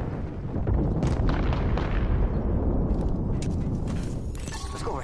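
A low explosion rumbles.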